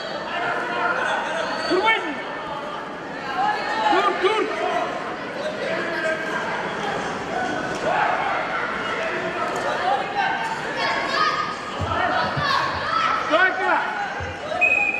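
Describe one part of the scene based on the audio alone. A crowd of spectators chatters and shouts throughout in an echoing hall.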